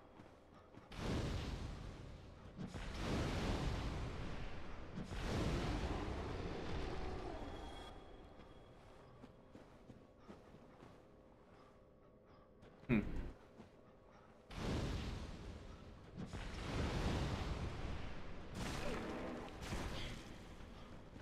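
Fireballs burst with loud whooshing roars, again and again.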